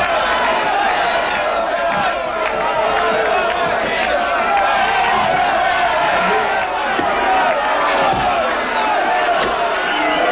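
Two men shout excitedly close by.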